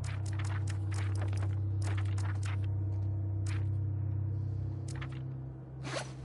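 Soft menu clicks tick in quick succession.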